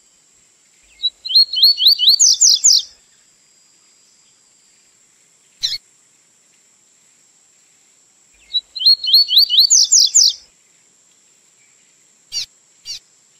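A small songbird sings a quick, bright phrase of rising whistles, close by.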